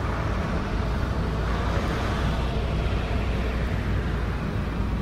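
A bus rumbles past close by on a road.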